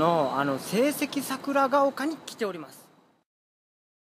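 A young man speaks close up with animation.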